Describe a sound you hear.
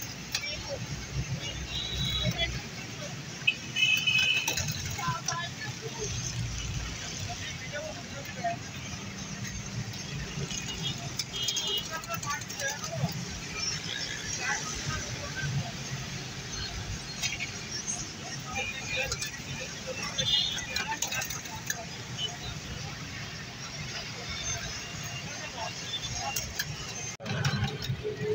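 Metal tongs clink against a wire fryer basket.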